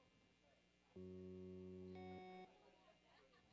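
An electric guitar plays a sustained chord through an amplifier.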